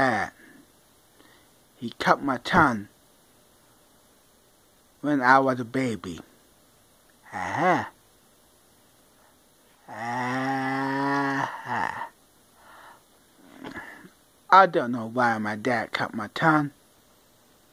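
A man speaks playfully in short bursts, close to the microphone.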